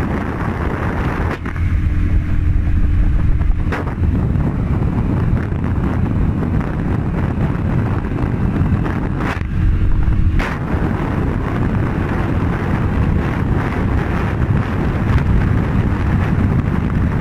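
A scooter engine drones steadily.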